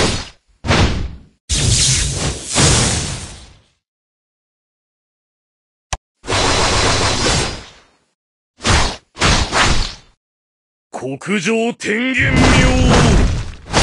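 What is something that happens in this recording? Swords slash and clang in sharp bursts of game fighting sounds.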